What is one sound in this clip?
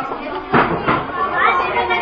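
A young woman talks into a phone close by.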